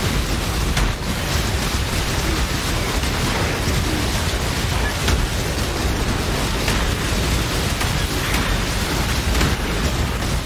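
Game spell effects crackle and boom without a break.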